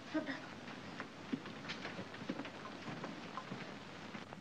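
Footsteps tap across a hard floor.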